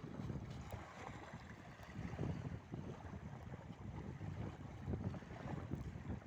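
Wind blows hard against the microphone outdoors.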